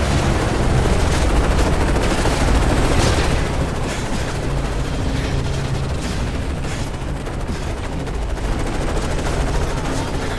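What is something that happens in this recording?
Explosions rumble nearby.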